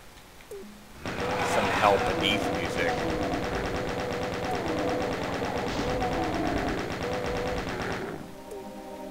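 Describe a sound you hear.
A rapid-fire gun fires a fast, steady stream of shots.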